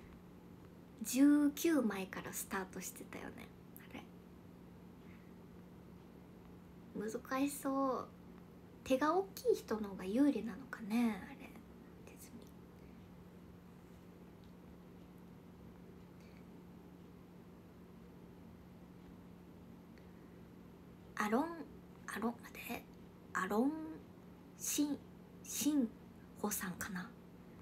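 A young woman talks calmly and close to a microphone, in short bursts with pauses.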